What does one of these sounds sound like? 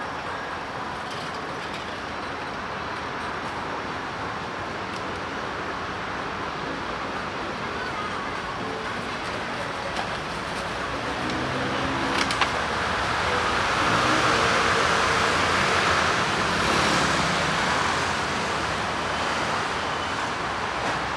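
City traffic hums steadily along a busy street outdoors.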